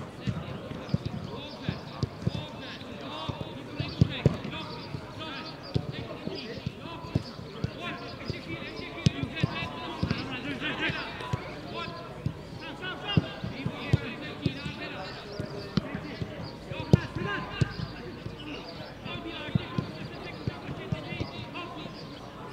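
Players shout and call to each other across an open pitch.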